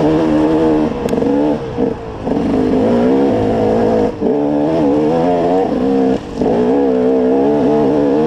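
A dirt bike engine revs loudly up close, rising and falling with short breaks.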